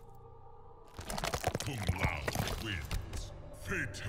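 Flesh and bodies fall with wet thuds.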